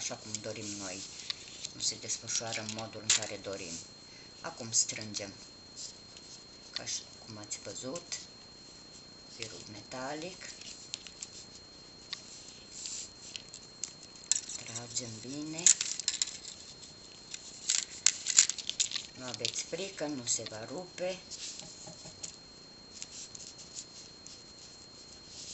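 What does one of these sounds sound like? Small plastic beads click softly against each other.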